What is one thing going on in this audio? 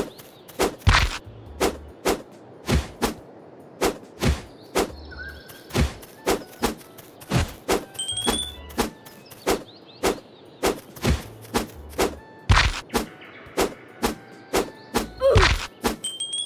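A sword swings and strikes again and again with sharp thwacks.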